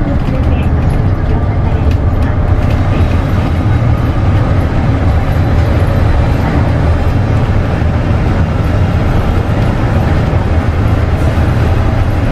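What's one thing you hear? Tyres roar on the road, echoing inside a tunnel.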